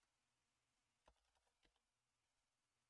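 Keys click briefly on a keyboard.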